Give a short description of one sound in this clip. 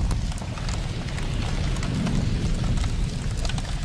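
Small fires crackle among debris.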